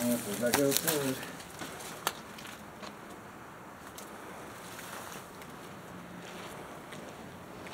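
Footsteps scuff on concrete.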